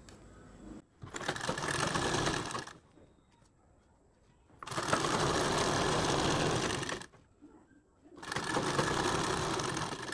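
A sewing machine whirs steadily in short bursts.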